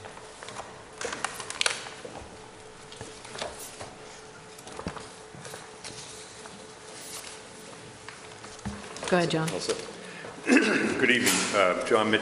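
Papers rustle and shuffle.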